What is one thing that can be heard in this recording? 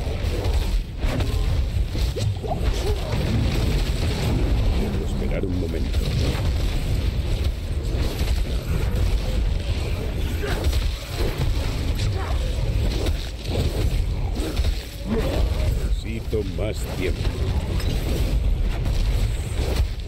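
Spells and weapon blows clash in a dense, rumbling battle.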